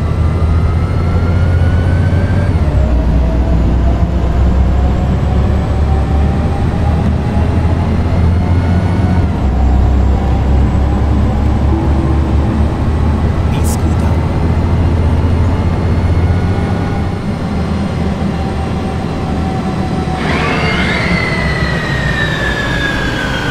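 A bus engine drones low and steady, with a whine that rises and drops as the gears change.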